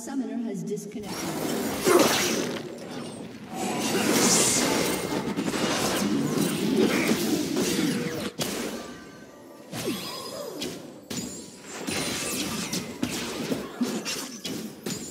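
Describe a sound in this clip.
Game spell effects and weapon hits crackle and clash in quick bursts.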